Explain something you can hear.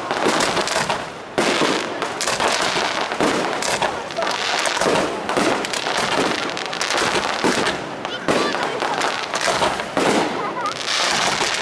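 Fireworks explode with loud booms.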